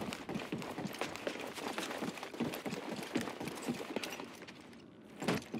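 Footsteps run quickly over metal floors.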